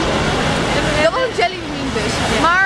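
A young woman talks excitedly close by.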